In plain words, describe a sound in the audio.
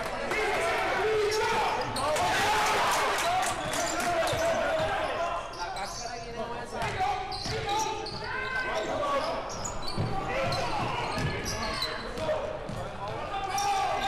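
A basketball bounces on the hardwood floor.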